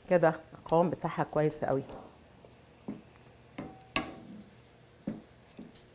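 A wooden spoon scrapes and stirs sauce in a pan.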